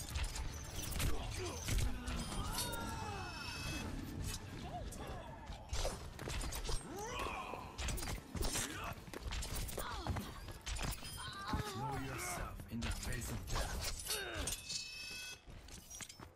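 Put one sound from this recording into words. Video game shuriken throws whoosh and strike in quick bursts.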